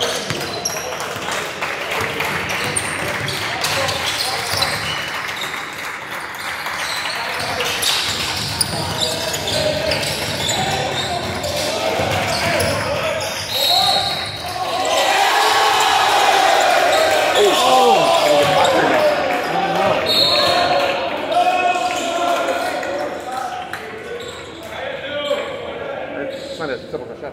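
Sneakers squeak on a hardwood floor in a large echoing gym.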